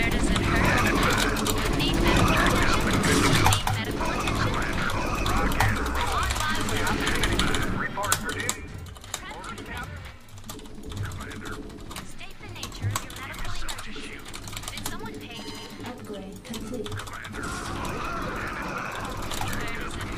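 Rapid gunfire crackles in a battle.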